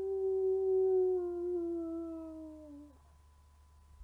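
A wolf howls in a long, slowly falling tone.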